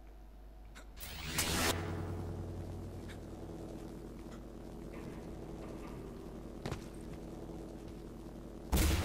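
A loud electric burst swells into a steady crackling hum.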